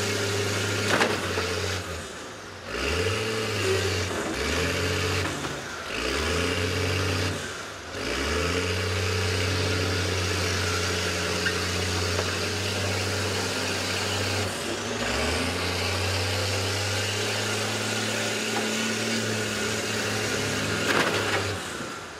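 Metal bangs as buses shove against each other.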